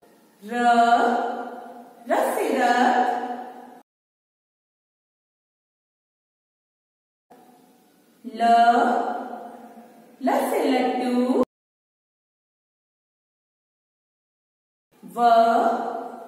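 A young woman speaks clearly and calmly, close to a microphone.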